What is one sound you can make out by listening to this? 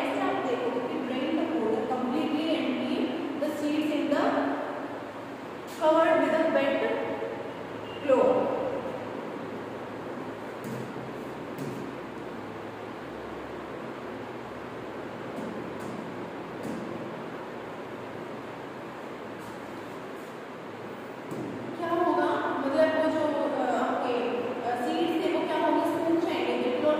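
A young girl reads aloud nearby, pausing now and then.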